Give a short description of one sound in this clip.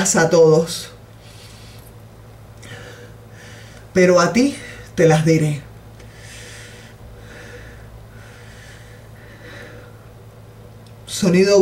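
A middle-aged woman speaks close by in short, calm phrases with long pauses.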